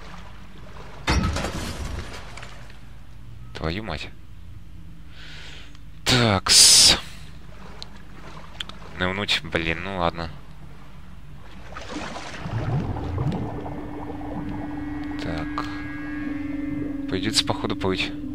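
Water sloshes and splashes as someone wades and swims.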